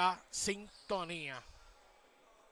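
A man calls out in a large, echoing hall.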